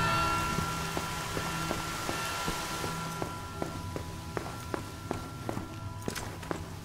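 Footsteps tap on a stone floor at a steady walking pace.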